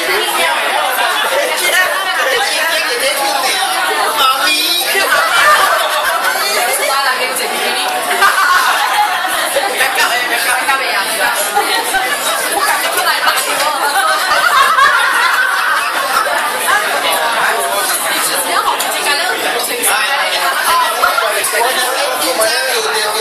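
A crowd of men and women talks and laughs loudly all around, close by.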